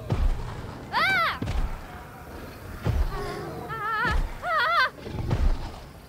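A woman screams in fear.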